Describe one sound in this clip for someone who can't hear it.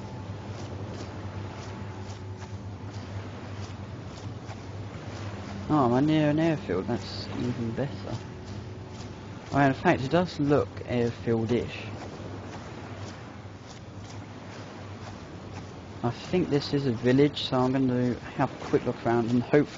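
Feet rustle through tall grass as a person crawls.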